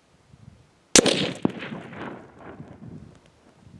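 A plastic jug bursts as water splashes out.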